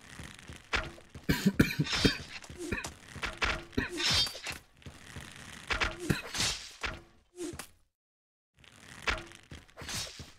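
Swords clang and clash.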